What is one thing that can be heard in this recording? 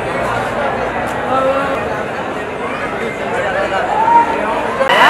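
A crowd of young men chatters and shouts loudly all around.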